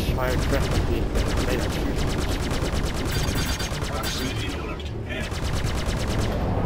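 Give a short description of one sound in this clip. A spacecraft engine hums steadily.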